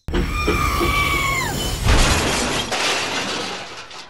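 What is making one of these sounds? A toy train crashes into a rock with a clatter.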